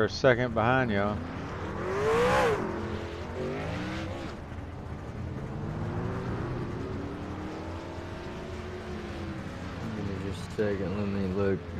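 Race cars drive past with a rising and falling engine roar.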